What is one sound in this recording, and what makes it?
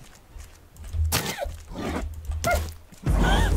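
A spear strikes an animal with a sharp thud.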